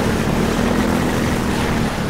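Water sprays and splashes loudly against a boat.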